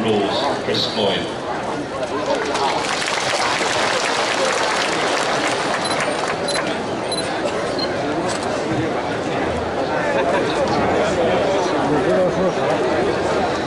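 Music plays loudly over outdoor loudspeakers.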